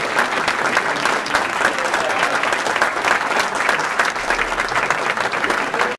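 A band plays music with guitars in a large echoing hall.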